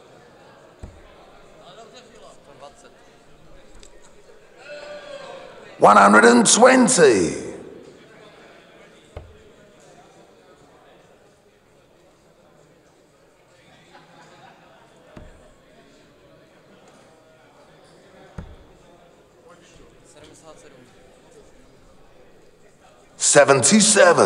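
A crowd murmurs quietly in a large hall.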